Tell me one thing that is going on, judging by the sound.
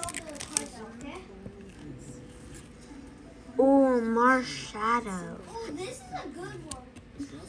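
Playing cards slide and rub against each other.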